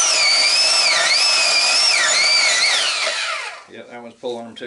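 A band saw whines loudly, then winds down to a stop.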